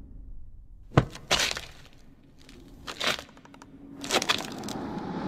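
Feet stamp on hard ground.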